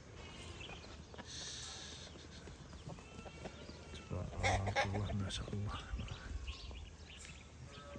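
Sheep hooves patter on dry earth as the sheep trot about.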